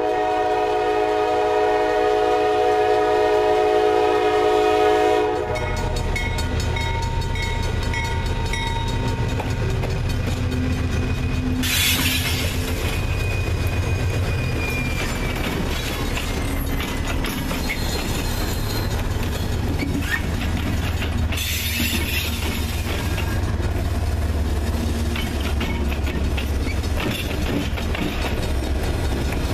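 A railway crossing bell rings rapidly.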